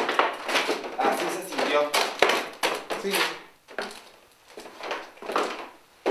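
Footsteps scuff on a hard floor.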